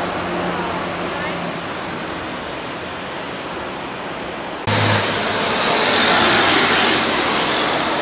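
Traffic rumbles past on a street.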